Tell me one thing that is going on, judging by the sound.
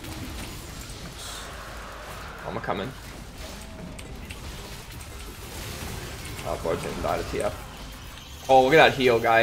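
Video game spell effects whoosh and crackle.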